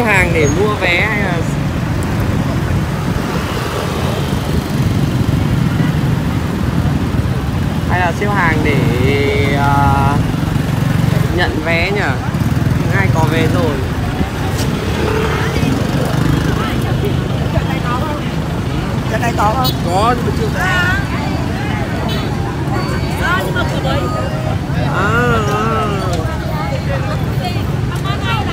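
Motorbike engines rumble and hum close by.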